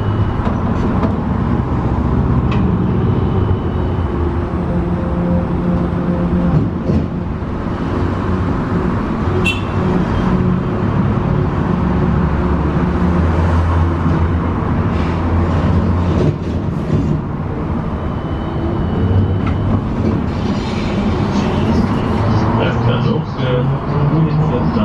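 A bus engine hums and rumbles steadily from inside while driving.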